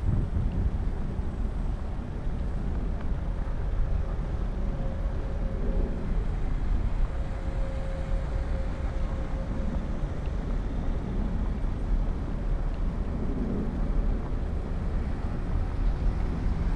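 Wind rumbles and buffets steadily outdoors.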